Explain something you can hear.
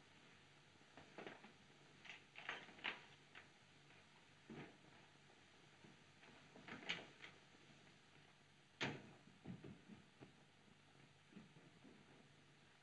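Footsteps creak and knock on a wooden floor.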